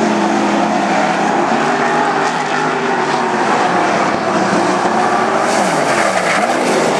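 Wingless sprint car engines roar at full throttle around a dirt track.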